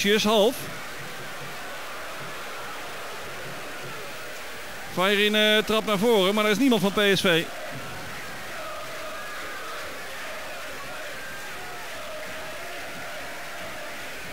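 A large stadium crowd murmurs steadily in the open air.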